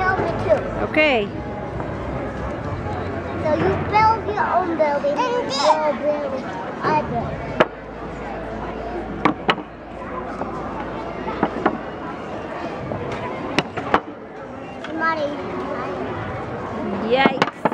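A young girl and boy chatter and squeal excitedly close by.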